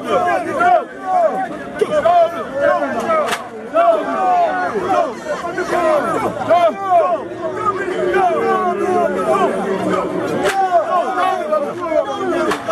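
An elderly man speaks loudly to a gathered crowd.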